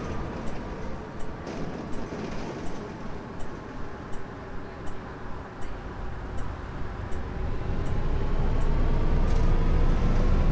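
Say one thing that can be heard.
A bus engine hums steadily, then grows louder as the bus speeds up.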